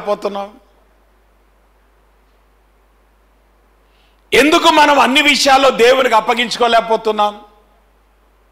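A man speaks with animation into a microphone, with long pauses.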